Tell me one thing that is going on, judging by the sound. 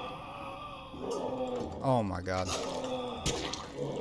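Thick liquid gurgles and splashes as a creature rises from it.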